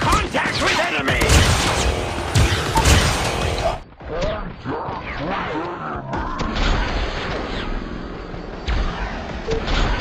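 A game gun fires rapid shots.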